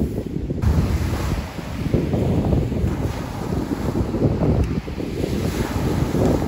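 Waves crash and wash onto a pebble beach.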